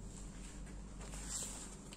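Pages of a book rustle.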